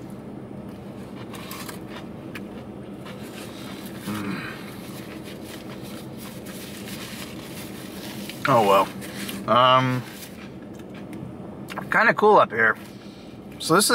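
A man chews food close by.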